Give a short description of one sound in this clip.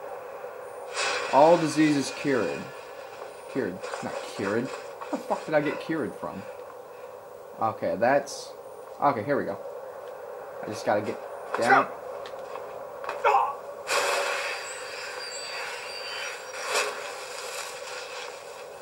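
Fighting sounds play through a small television speaker.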